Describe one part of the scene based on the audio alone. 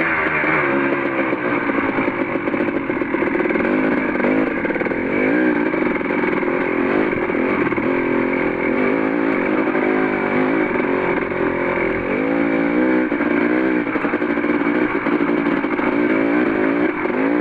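A dirt bike engine revs and growls up close, rising and falling in pitch.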